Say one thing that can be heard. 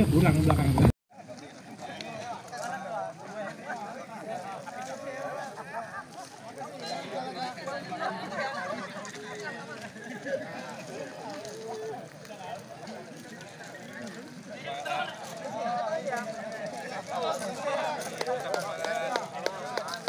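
A crowd of men chatters outdoors.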